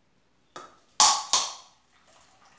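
A blender jar knocks against a metal pan.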